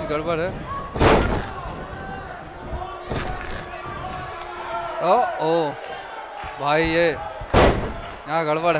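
Heavy thuds of bodies hitting a wrestling mat ring out.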